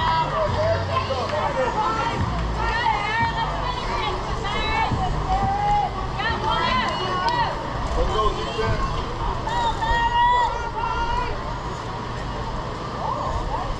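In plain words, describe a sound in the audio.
Young boys shout and cheer outdoors.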